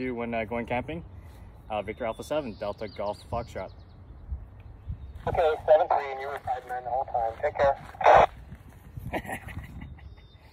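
A man talks calmly up close.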